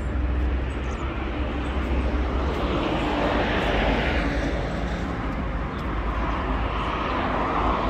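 Traffic passes by on a nearby road.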